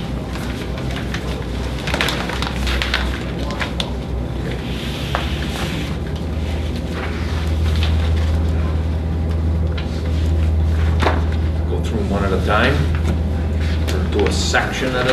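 A woman types on a laptop keyboard.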